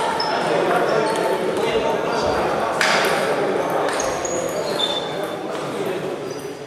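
Table tennis balls click against paddles and tables in a large echoing hall.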